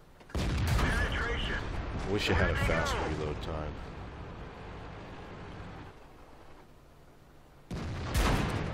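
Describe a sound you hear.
A tank cannon fires with a heavy boom.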